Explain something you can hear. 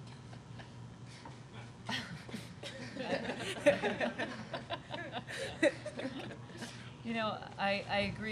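A middle-aged woman laughs into a microphone.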